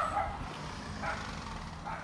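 Footsteps thud on a metal boat roof.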